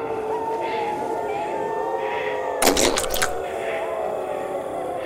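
Eerie game music plays steadily.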